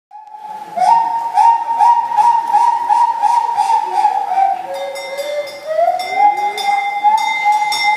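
A harmonica plays a bright, rhythmic melody through loudspeakers.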